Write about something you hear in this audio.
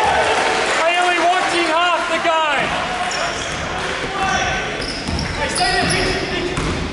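Sneakers squeak sharply on a gym floor in a large echoing hall.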